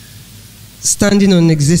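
An elderly woman speaks through a microphone and loudspeakers in a large room.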